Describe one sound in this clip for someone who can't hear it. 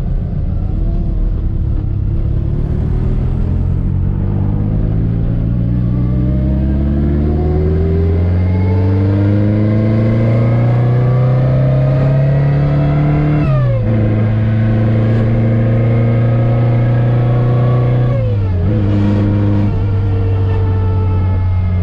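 A car engine revs up through the gears, rising in pitch and dropping at each shift.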